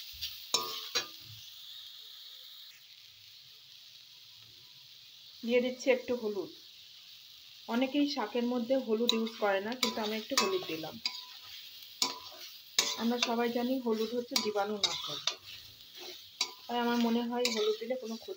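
A metal spatula scrapes and clicks against a steel wok, stirring chopped vegetables.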